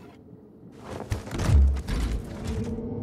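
A heavy case lid creaks open with a thud.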